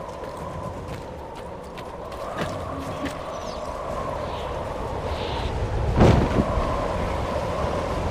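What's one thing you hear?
Wind howls steadily in a snowstorm.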